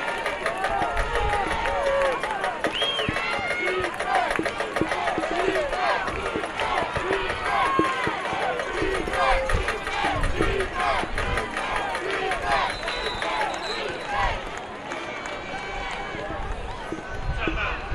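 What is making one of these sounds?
A crowd chatters and calls out from stands outdoors.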